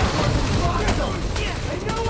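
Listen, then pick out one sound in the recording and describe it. Punches land with heavy thuds during a brawl.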